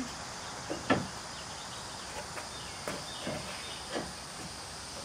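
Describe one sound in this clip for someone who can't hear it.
Metal parts clink and knock as an engine is worked on.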